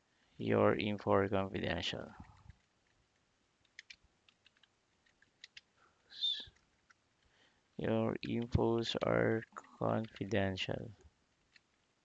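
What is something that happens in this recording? A young man talks calmly and closely into a microphone, with pauses.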